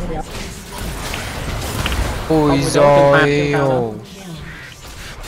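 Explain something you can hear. Fantasy spell effects whoosh and crackle during a fight.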